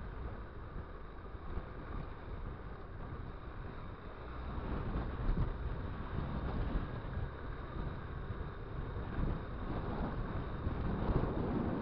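Tyres rumble over a gravel dirt road.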